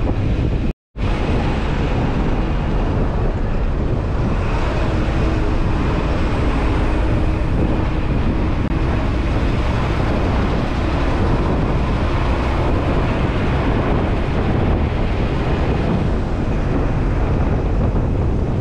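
Tyres crunch and rattle over a rough dirt road.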